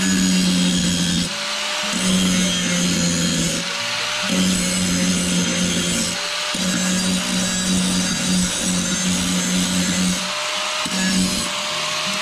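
An angle grinder whines loudly as it grinds metal in short bursts.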